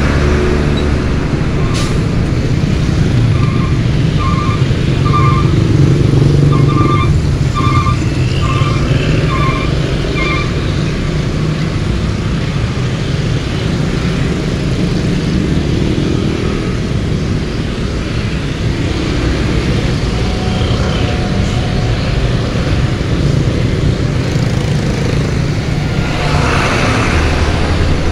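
Heavy traffic rumbles steadily nearby, with engines idling and revving.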